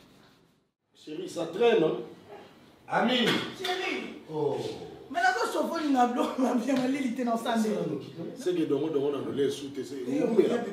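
A man talks animatedly, close by.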